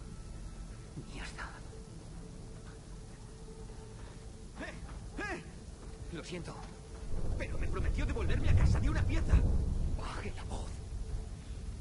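A wounded man groans and speaks weakly.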